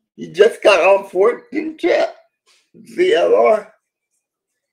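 A middle-aged man speaks calmly into a microphone over an online call.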